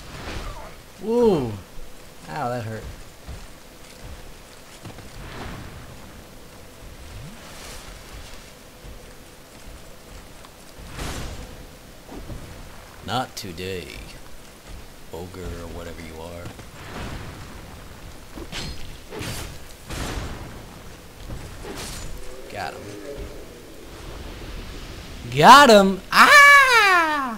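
A large creature lets out deep, gliding groans and roars.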